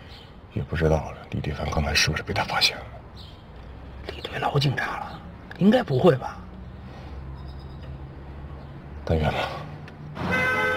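A middle-aged man speaks tensely, close by.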